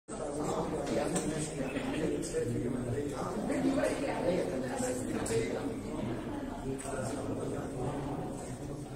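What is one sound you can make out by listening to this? A man speaks calmly into a microphone, heard through a loudspeaker in an echoing hall.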